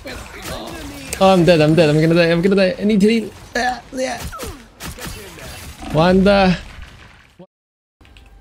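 Game gunfire and effects crackle and zap.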